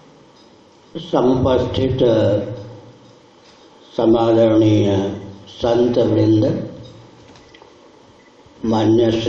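An elderly man speaks slowly into a microphone, heard through a loudspeaker.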